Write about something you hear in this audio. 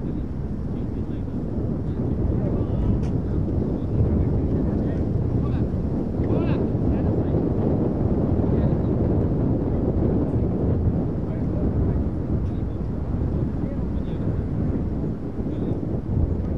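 Wind blows steadily across an open field outdoors.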